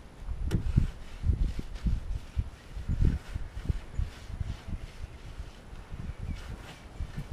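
A cloth rubs across a boat hull.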